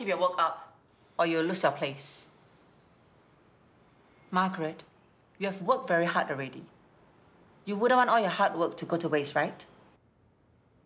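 A woman speaks firmly and with animation, close by.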